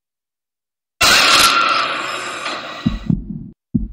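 A sudden loud shriek from a horror game blasts out and fades.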